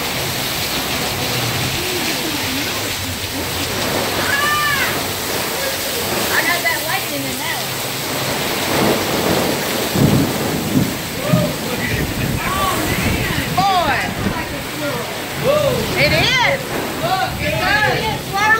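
Strong wind gusts and roars.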